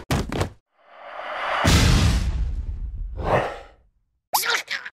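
A large creature growls loudly.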